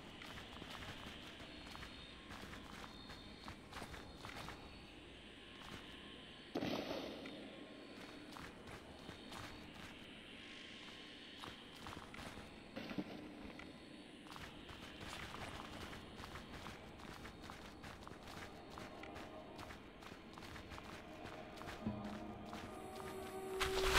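Light footsteps pad on stone.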